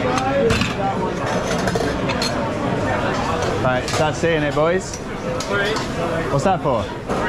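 A crowd of people chatters steadily in a busy room.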